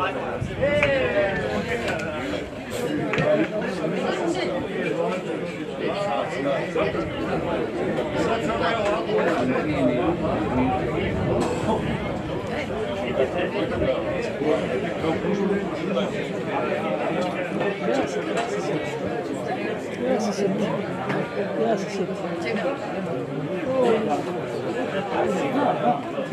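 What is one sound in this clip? A small crowd of spectators chatters and calls out outdoors.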